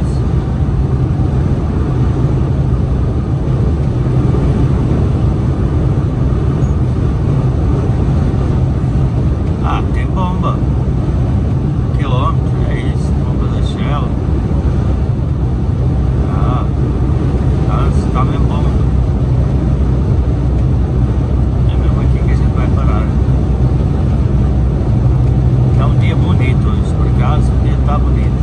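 A vehicle engine hums steadily at highway speed.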